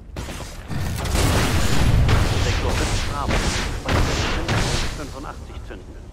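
A large gun fires heavy booming blasts.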